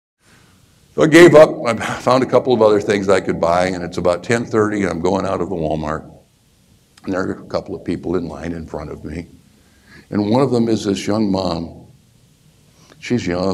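A middle-aged man speaks with animation through a clip-on microphone.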